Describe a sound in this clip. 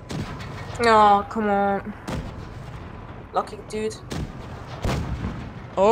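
A tank cannon fires with a sharp boom.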